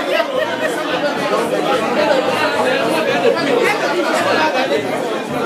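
A crowd of men and women chatter loudly all around in a busy room.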